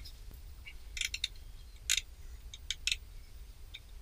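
A socket wrench ratchets as it turns a fitting.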